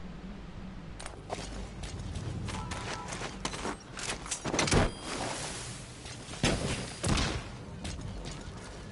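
Footsteps thud on a metal deck.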